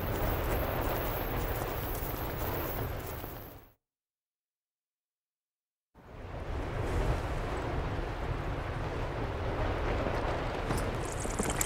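Strong wind blows steadily.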